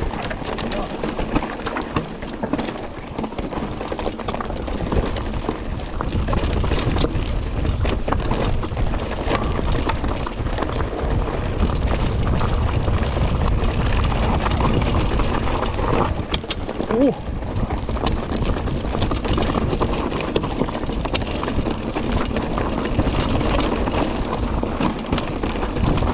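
Mountain bike tyres roll and rattle over a rocky dirt trail.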